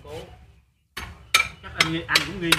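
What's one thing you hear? Metal scaffolding clanks as a man climbs it.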